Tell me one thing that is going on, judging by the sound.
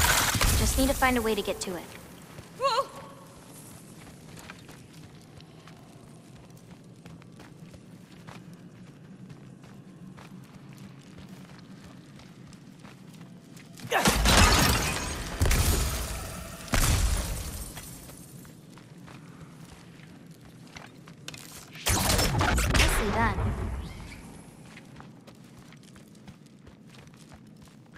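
Footsteps crunch on rocky ground.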